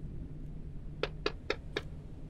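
Knuckles knock several times on a door.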